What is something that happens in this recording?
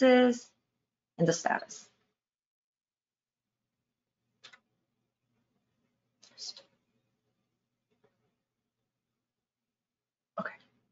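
A young woman speaks calmly into a microphone, in short bursts with pauses.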